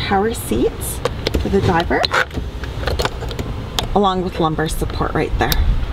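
A plastic switch clicks.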